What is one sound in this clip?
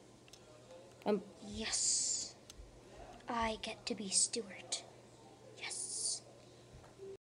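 A young boy talks playfully close to a microphone.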